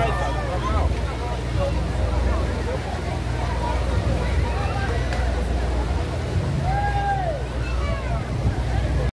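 Water splashes and ripples in a pool.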